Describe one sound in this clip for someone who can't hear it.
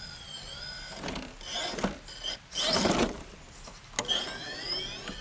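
A small electric motor whines.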